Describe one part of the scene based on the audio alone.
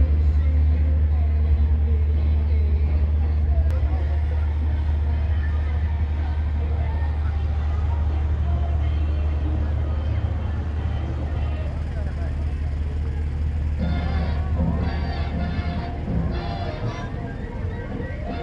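A crowd of men, women and children chatters outdoors along a street.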